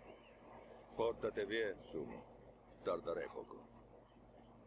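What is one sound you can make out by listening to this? An older man speaks calmly in a low, gravelly voice.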